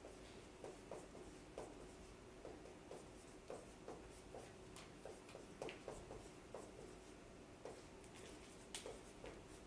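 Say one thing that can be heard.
A marker taps and squeaks on a whiteboard.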